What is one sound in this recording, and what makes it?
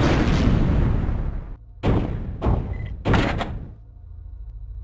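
Loud explosions boom in quick bursts.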